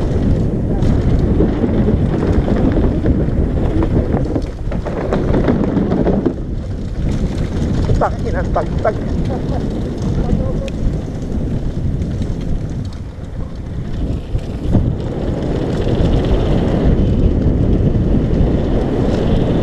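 A bicycle frame and chain rattle over bumps.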